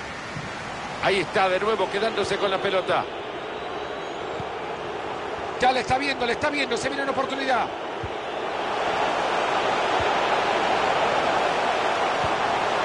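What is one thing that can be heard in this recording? A stadium crowd murmurs and cheers, swelling louder toward the end.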